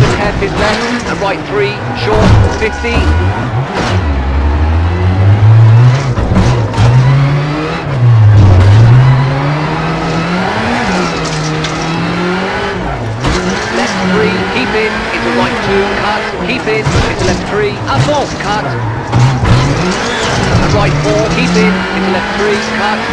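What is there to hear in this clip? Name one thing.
Tyres crunch and skid over a loose gravel road.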